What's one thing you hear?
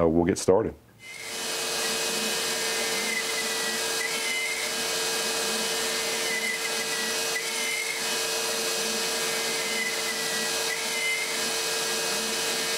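A machine router hums steadily as it cuts wood.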